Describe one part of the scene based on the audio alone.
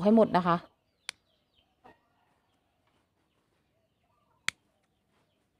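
Scissors snip sharply.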